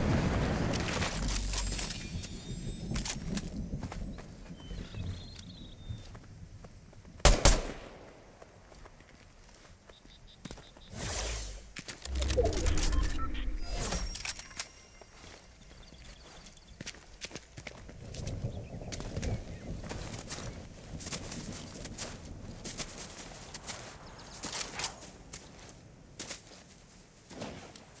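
Footsteps patter over grass and rock.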